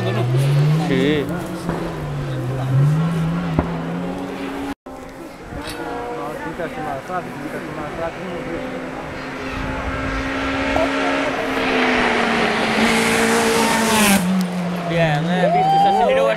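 A crowd of adult men and women chat and call out excitedly nearby.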